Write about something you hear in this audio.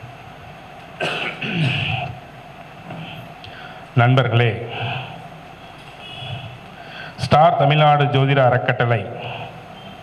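A man speaks into a microphone over a loudspeaker in a reverberant hall.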